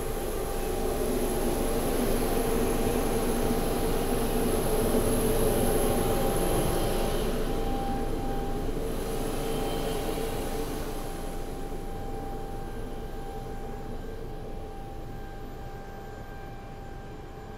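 An aircraft engine whines and roars steadily outdoors, slowly growing quieter.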